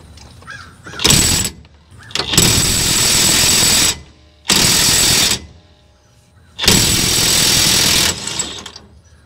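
An impact wrench hammers loudly in several short bursts.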